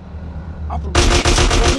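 A gun fires rapidly in a burst.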